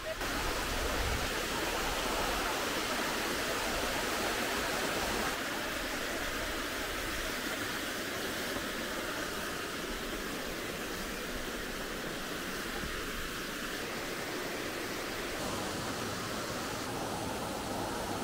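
Water rushes and splashes steadily over rocks nearby.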